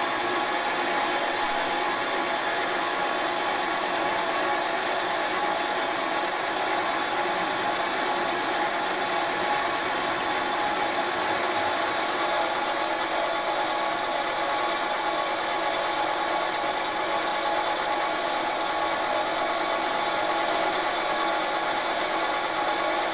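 A metal lathe hums steadily as it turns.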